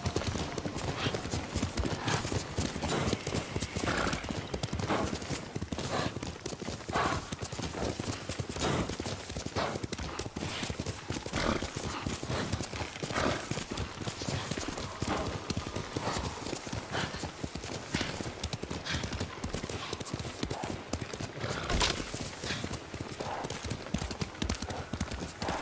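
A horse gallops with quick, steady hoofbeats on soft ground.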